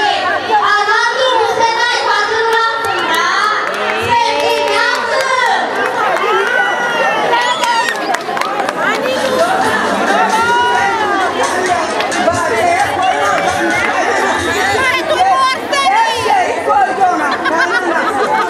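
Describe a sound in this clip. A crowd of women and men chatter and cheer close by.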